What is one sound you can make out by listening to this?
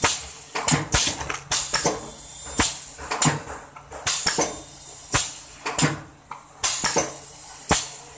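A packaging machine's sealing jaws snap shut with sharp knocks.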